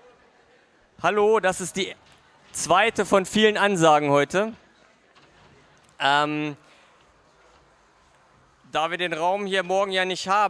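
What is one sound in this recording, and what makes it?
A middle-aged man speaks calmly into a microphone in a large hall.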